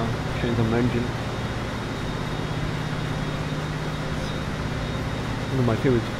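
An electric train rumbles steadily along the tracks.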